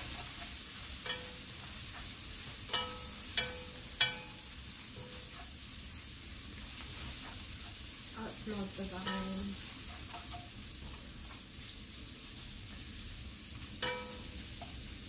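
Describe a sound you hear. Metal tongs clink against a pot.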